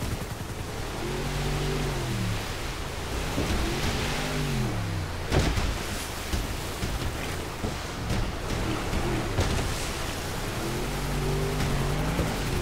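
A motorboat engine roars and revs up and down.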